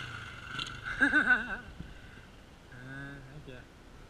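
A dirt bike engine revs up and down in the distance.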